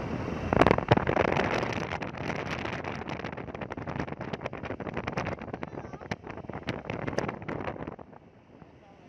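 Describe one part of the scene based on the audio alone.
Wind buffets loudly against the microphone while riding.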